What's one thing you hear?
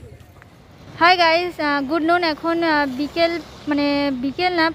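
A young woman speaks close to a clip-on microphone.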